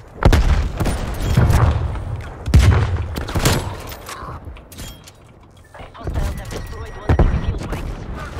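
Rifle shots crack loudly with a short echo.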